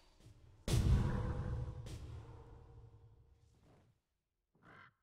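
A magical blast booms and slowly rings away.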